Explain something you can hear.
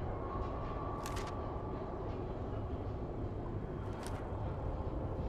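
Paper pages rustle as a book page turns.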